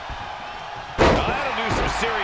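A wrestler slams onto a canvas with a heavy thud.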